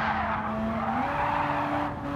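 A racing car engine's pitch jumps up as it shifts down a gear.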